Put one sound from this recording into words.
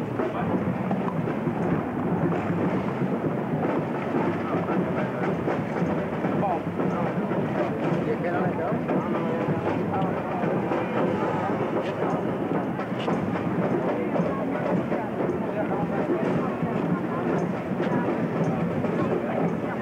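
A marching band plays in the distance.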